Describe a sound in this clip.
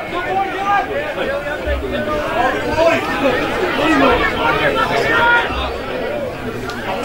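Several men shout and call out to one another outdoors.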